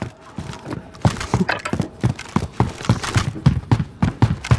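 Footsteps thud quickly.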